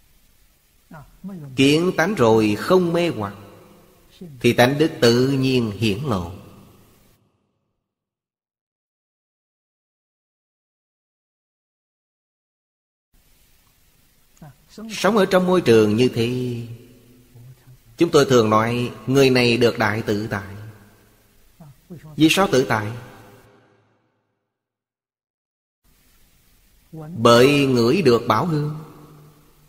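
An elderly man speaks calmly in short phrases close to a microphone.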